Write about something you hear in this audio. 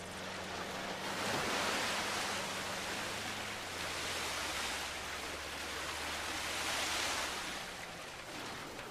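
Water splashes and sprays around tyres driving through a river.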